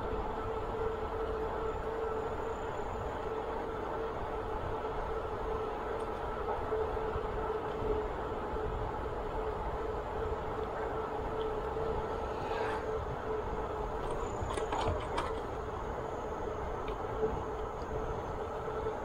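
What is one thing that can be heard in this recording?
Bicycle tyres hum steadily on a paved path.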